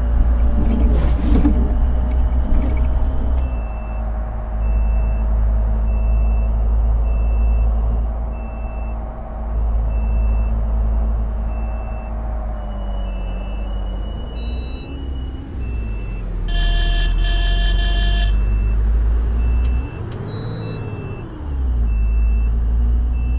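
A bus engine hums steadily, its pitch rising and falling as the bus speeds up and slows down.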